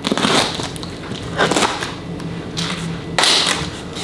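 Cardboard flaps scrape open.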